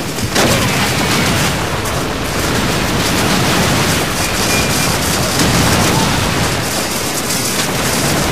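Explosions rumble and boom all around.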